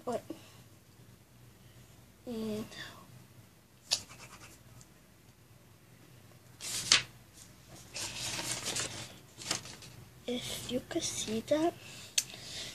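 A crayon scratches across paper.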